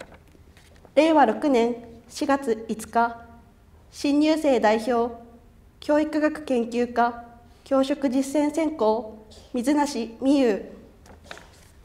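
A young woman reads out formally into a microphone in a large echoing hall.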